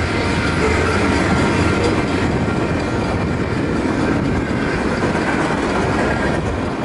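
A freight train rumbles past close by, wheels clattering on the rails.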